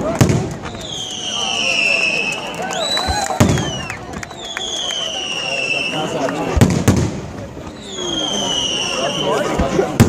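Whistling fireworks shriek with a falling pitch.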